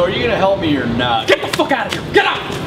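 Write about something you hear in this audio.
A man slaps another man.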